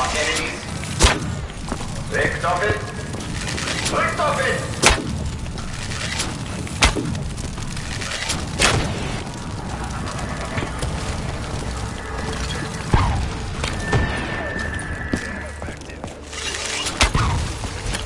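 A bow twangs sharply as arrows are loosed, now and then.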